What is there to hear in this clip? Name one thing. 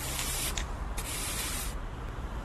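A spray can hisses as paint is sprayed.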